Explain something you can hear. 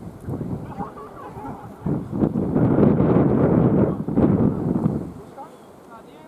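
Wind gusts loudly across the microphone outdoors.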